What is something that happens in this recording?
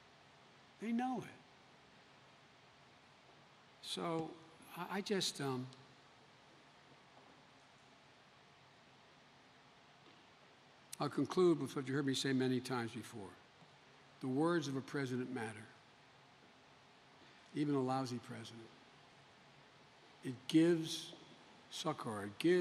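An elderly man speaks slowly and haltingly into a microphone, with long pauses.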